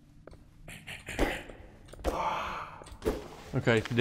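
A hammer thuds against a body.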